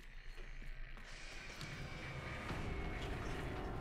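A zombie groans and growls nearby.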